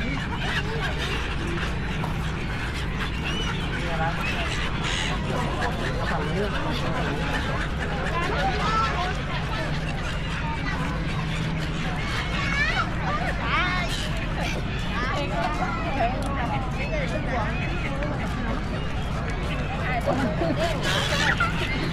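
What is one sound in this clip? Seagulls cry overhead, over and over.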